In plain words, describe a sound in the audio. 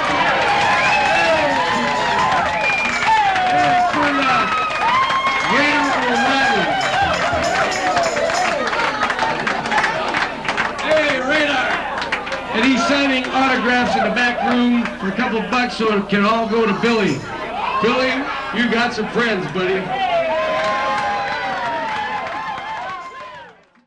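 A drum kit plays a steady beat.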